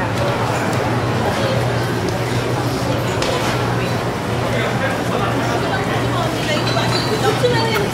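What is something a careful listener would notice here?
A dense crowd of men and women chatters all around in a busy, echoing covered hall.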